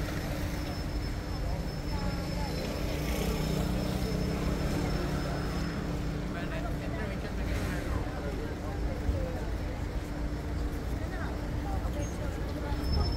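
Footsteps of a walking crowd shuffle on the pavement outdoors.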